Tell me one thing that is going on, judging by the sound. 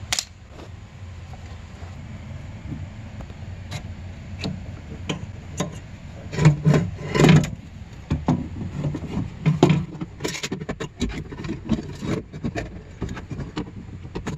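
Plastic and metal parts click and rattle as a hand works on them.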